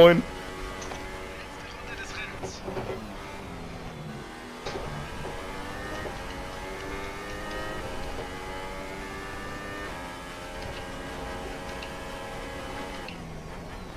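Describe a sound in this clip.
A racing car engine whines at high revs, rising and falling as the gears change.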